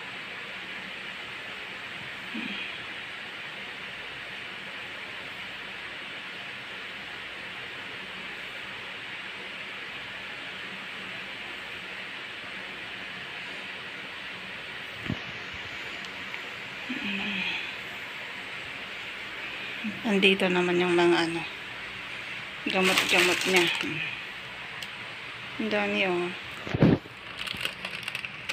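A breathing machine hisses steadily through a mask.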